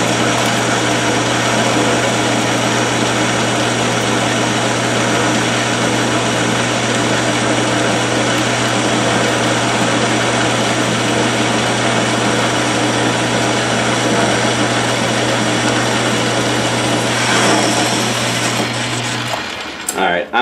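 A cutting tool scrapes and hisses against spinning metal.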